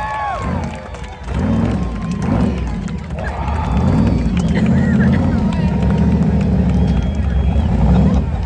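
A pickup truck's engine roars at high revs during a tyre-smoking burnout.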